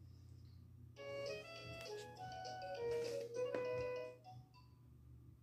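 A toy plays a bright electronic tune.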